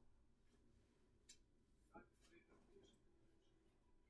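Clothing rustles as a person pulls off a garment.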